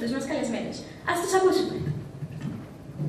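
A young woman speaks into a microphone over a loudspeaker.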